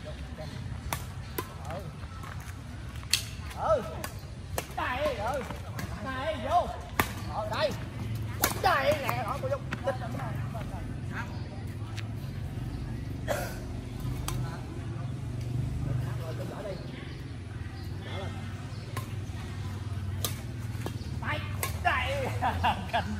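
Badminton rackets sharply hit a shuttlecock back and forth outdoors.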